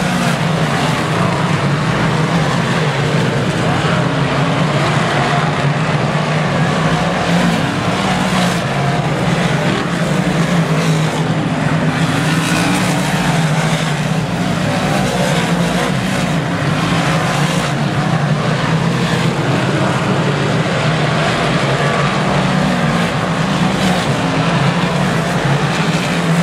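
Race car engines roar loudly nearby.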